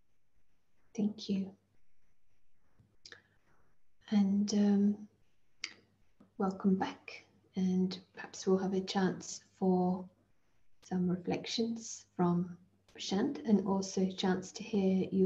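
A woman speaks calmly and softly, heard through an online call.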